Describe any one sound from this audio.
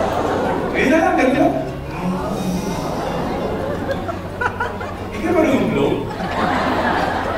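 A man speaks through a microphone over loudspeakers in a large echoing hall.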